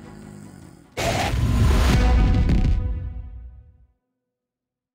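A loud low boom sounds and fades away.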